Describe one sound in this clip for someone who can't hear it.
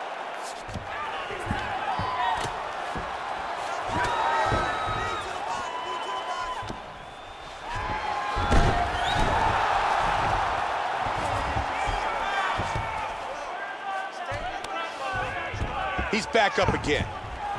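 Punches land with dull thuds on bodies.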